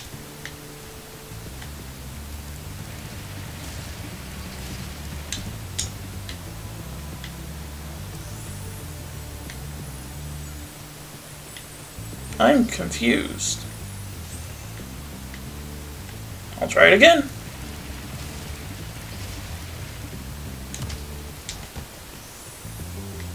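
Game music plays steadily.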